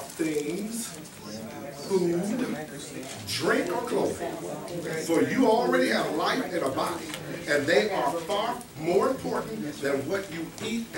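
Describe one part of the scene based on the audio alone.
A man speaks with animation to a room, his voice echoing slightly.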